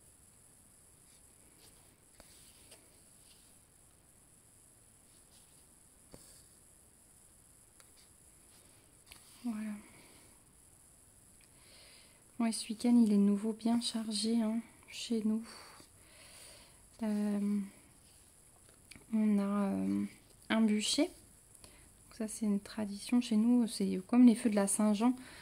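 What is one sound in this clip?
Thread rasps softly as it is pulled through stiff fabric.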